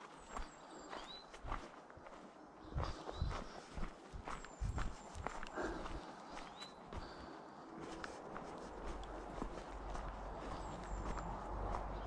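Birds chirp in the trees.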